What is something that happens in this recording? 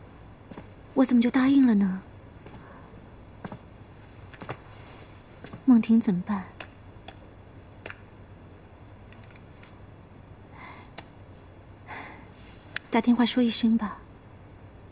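A young woman speaks in short, quiet bursts nearby.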